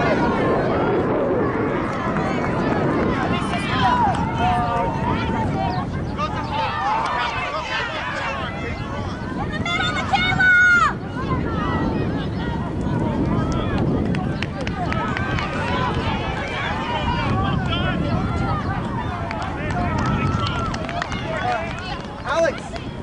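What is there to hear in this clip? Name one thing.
Young women shout and call out to each other across an open field outdoors.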